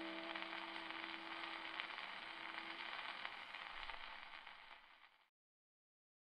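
An old gramophone plays a scratchy record with steady surface hiss and crackle, then falls silent.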